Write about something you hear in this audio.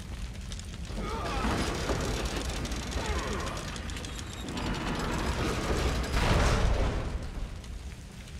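A heavy metal mechanism grinds and clanks as it turns.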